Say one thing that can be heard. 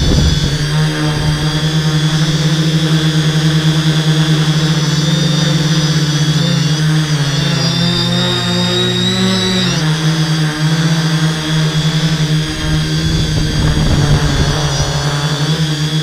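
The electric motors and propellers of a hexacopter whine and hum, shifting in pitch as it climbs and turns.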